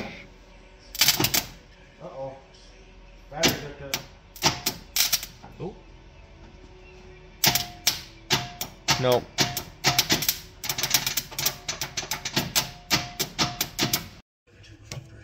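A ratchet wrench clicks.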